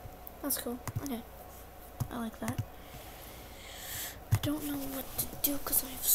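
A game interface clicks as a menu opens.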